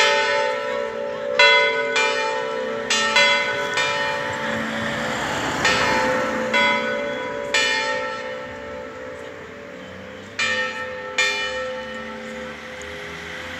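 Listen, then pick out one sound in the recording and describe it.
A church bell rings out repeatedly, each stroke ringing on and slowly fading.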